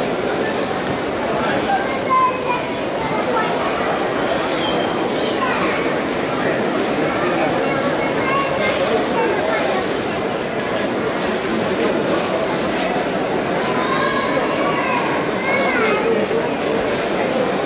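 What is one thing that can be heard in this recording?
A large crowd murmurs and chatters all around.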